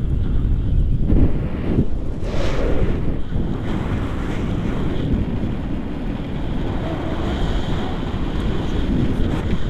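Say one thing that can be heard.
Wind rushes loudly and buffets against the microphone.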